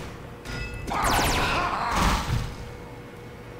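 A metal cabinet door slides shut with a clank.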